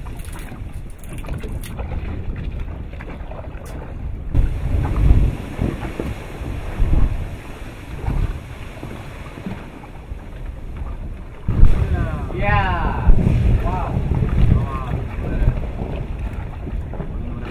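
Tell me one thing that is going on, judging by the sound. Steam blasts roar and rumble in bursts where lava meets the sea.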